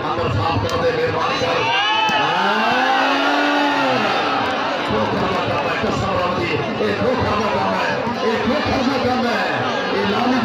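A large outdoor crowd cheers and shouts loudly.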